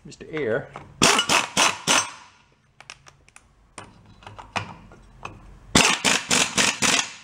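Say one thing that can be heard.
An air hammer rattles in short, loud bursts against metal.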